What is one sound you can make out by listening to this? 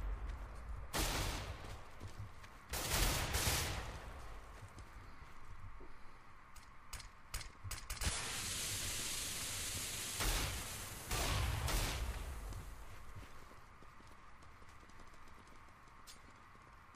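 Footsteps scuff on stone.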